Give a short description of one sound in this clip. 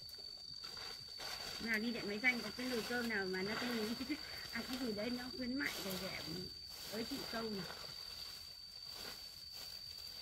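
Piled leafy branches rustle as they are gathered up.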